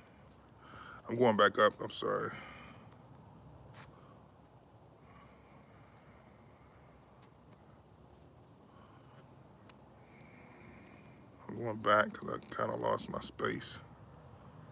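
A man speaks close up, in short calm bursts with pauses.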